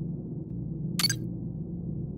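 A short electronic click sounds once.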